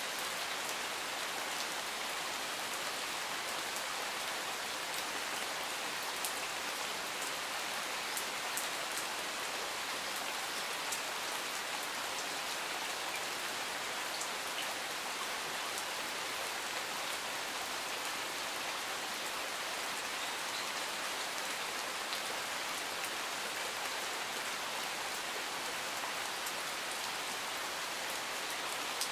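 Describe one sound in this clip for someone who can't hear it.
Steady rain patters on leaves and gravel outdoors.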